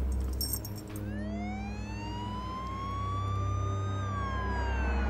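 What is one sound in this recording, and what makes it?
A police siren wails, slowly rising in pitch and then falling.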